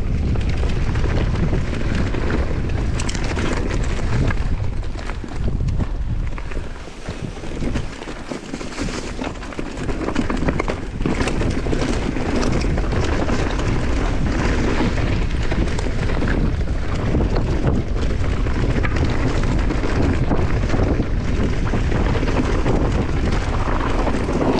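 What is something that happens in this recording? Wind rushes loudly past a microphone.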